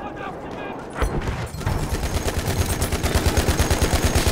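A heavy machine gun fires in fast, loud bursts.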